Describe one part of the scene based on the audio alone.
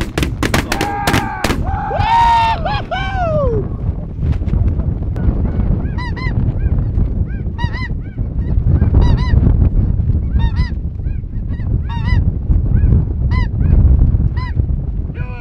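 Birds call repeatedly overhead in short, squawking cries.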